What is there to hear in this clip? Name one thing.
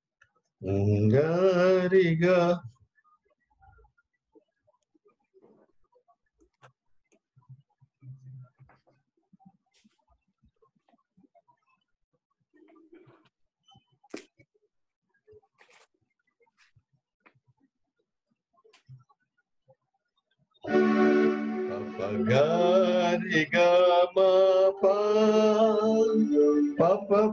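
A woman sings a slow melody over an online call.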